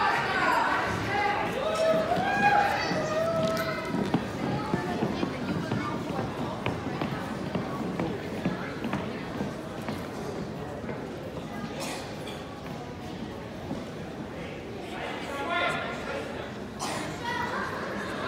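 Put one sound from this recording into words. A crowd chatters softly in a large echoing hall.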